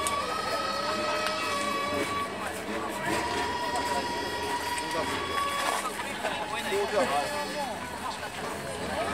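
A crowd of people murmurs and chatters nearby outdoors.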